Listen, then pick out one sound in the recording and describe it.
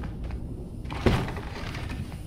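A wooden door bangs open.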